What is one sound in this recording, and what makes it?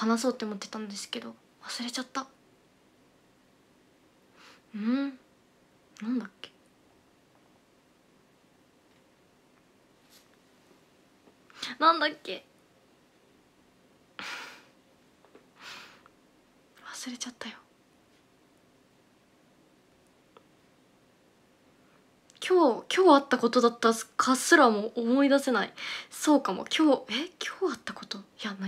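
A young woman talks softly and casually, close to a microphone, in short bursts.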